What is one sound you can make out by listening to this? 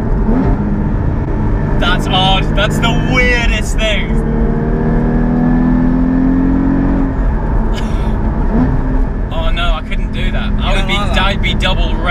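A car engine hums steadily and revs up and down.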